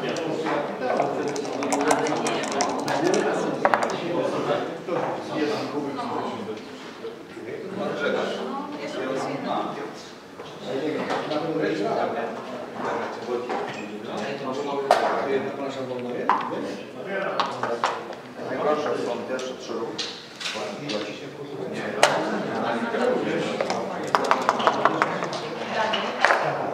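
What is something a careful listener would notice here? Dice rattle in a shaker cup.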